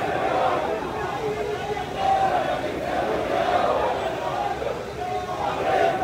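A large crowd of men chants together loudly outdoors.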